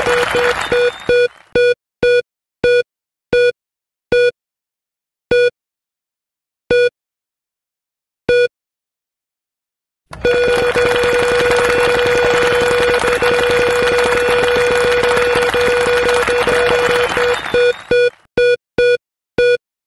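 An electronic game wheel ticks as it spins, slowing down between beeps.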